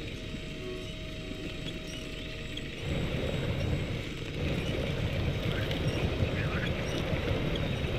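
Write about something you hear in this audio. Water splashes around truck wheels.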